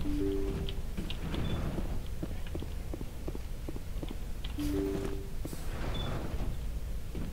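A sliding door hisses open.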